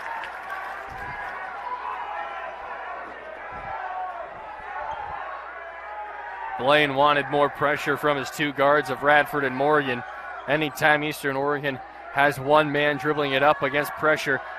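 A basketball bounces on a hard wooden court.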